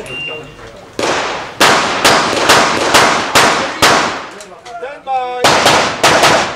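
Rapid pistol shots crack loudly, one after another, with a short echo.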